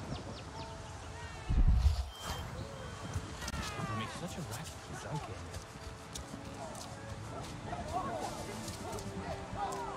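Footsteps pad across grass.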